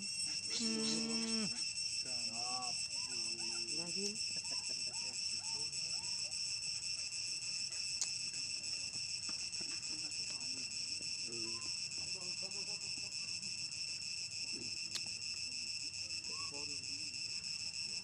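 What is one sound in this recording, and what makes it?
A young monkey squeals and whimpers close by.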